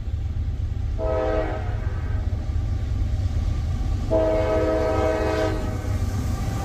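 A train horn blows loudly in long blasts.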